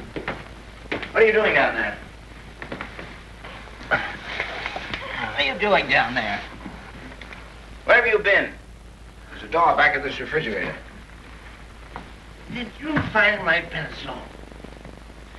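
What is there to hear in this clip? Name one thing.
A man shouts and grunts in an old, crackly recording.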